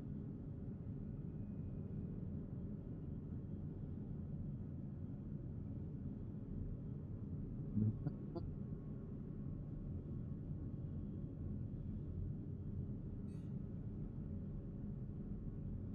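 A spaceship's engine hums low and steadily.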